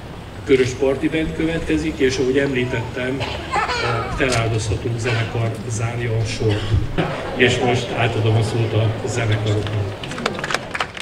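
A middle-aged man speaks calmly into a microphone, heard through loudspeakers outdoors.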